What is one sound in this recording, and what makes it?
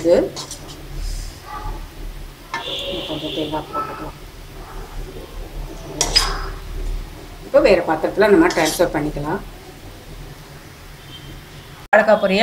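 A metal spatula scrapes and stirs food in a pan.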